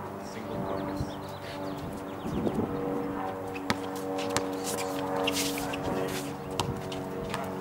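A basketball bounces on an outdoor court.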